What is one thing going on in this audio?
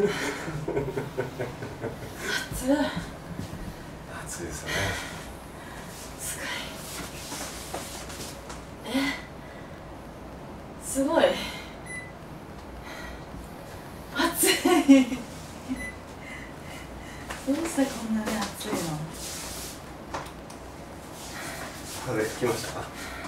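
A young woman speaks and laughs close by.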